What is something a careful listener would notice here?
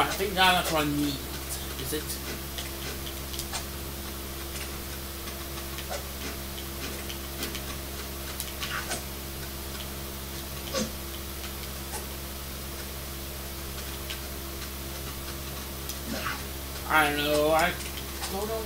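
Video game music plays from a television.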